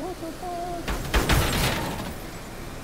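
A car bumps into another car with a metallic thud.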